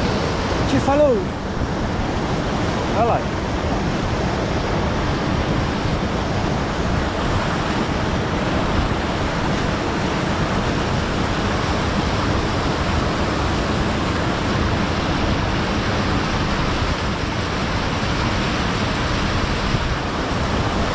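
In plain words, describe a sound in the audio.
A river rushes and splashes steadily nearby.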